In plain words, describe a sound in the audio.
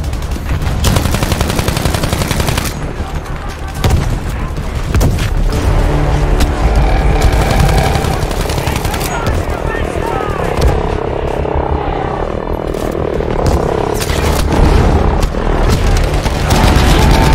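Rifle shots crack in bursts.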